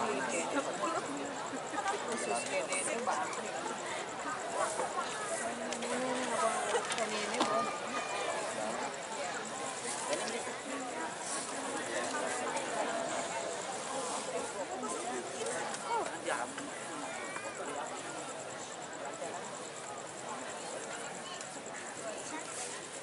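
A large outdoor crowd murmurs and chatters nearby.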